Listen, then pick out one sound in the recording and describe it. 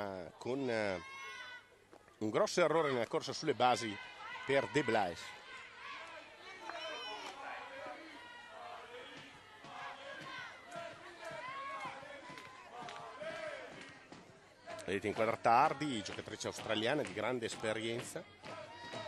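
A crowd of spectators chants and sings loudly.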